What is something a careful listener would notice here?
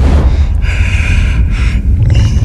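A young woman cries out in fear close by.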